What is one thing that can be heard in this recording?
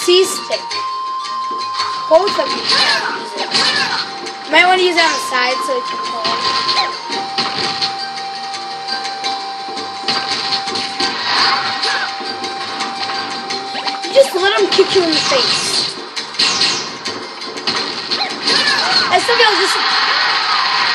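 Video game music plays through a television speaker.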